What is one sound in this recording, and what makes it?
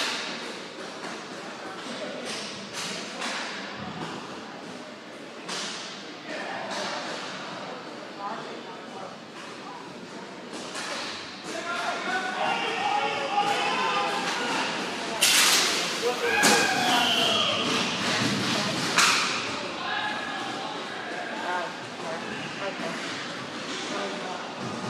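Skate wheels roll and scrape on a hard floor.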